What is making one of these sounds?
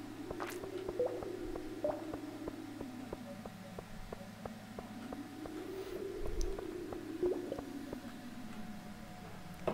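Quick light footsteps tap steadily.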